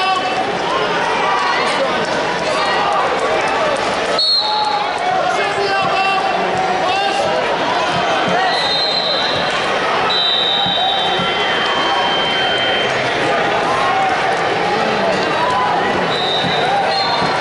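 A crowd chatters throughout a large echoing arena.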